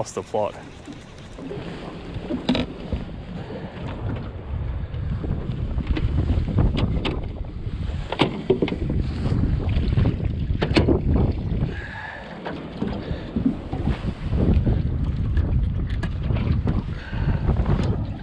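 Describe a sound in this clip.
Wind rumbles across the microphone outdoors on open water.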